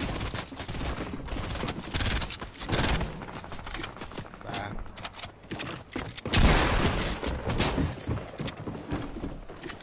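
Automatic rifle shots crack in a video game.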